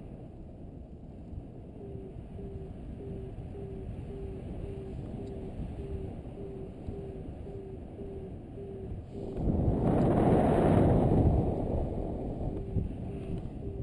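Wind rushes past steadily outdoors, swelling into a loud gust for a few seconds.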